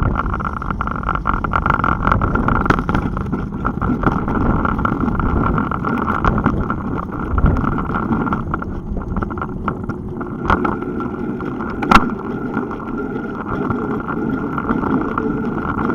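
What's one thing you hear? Bicycle tyres rumble over rough pavement.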